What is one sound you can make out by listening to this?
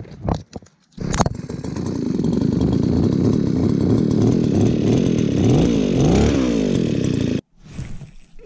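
A gas ice auger engine roars loudly.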